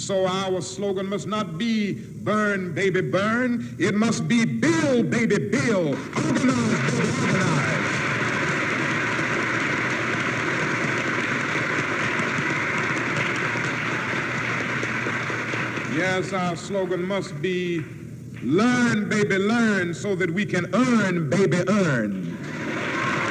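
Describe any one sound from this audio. A man speaks forcefully into a microphone.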